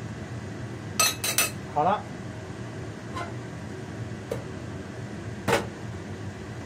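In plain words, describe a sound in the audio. A glass lid clinks against a pot.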